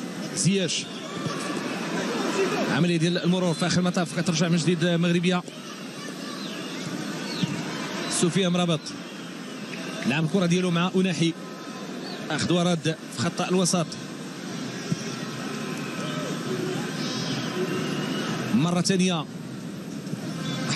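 A large crowd murmurs and roars steadily in an open stadium.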